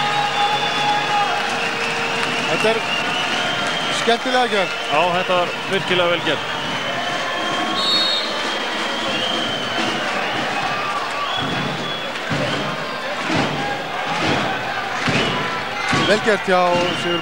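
A large crowd cheers and chants in an echoing indoor arena.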